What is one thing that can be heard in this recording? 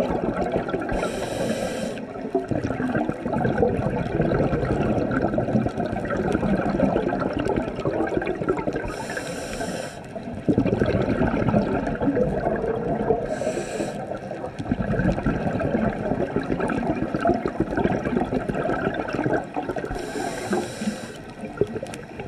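A scuba diver breathes in through a regulator with a hiss.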